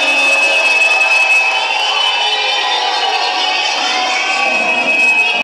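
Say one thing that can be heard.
Loud electronic music plays through large speakers in a hall.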